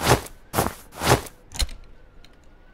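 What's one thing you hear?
A wooden drawer slides open with a clunk.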